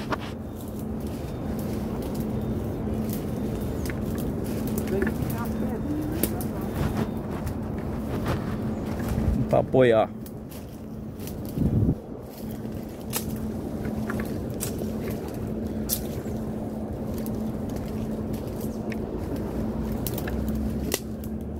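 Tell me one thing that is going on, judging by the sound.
Dry leaves and twigs rustle and crackle as someone pushes through undergrowth.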